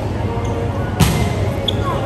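A volleyball is struck hard in an echoing gym.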